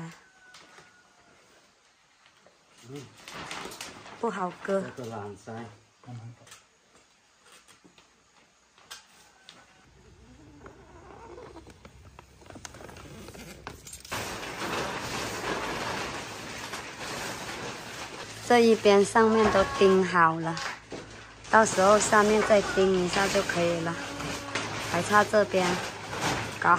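A plastic sheet rustles and crinkles.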